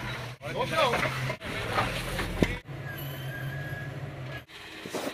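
Tyres grind and scrape on rock.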